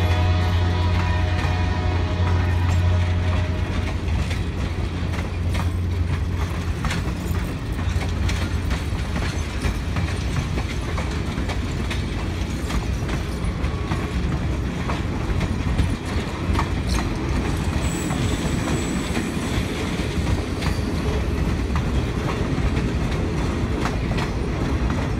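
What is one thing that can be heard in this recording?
A passenger train rumbles slowly past outdoors.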